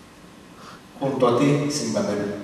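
An accordion plays.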